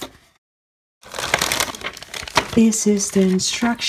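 A sheet of paper rustles in hands.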